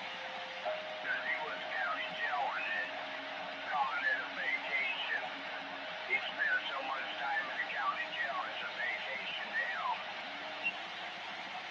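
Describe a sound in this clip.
Warbling, squealing tones come through a radio loudspeaker.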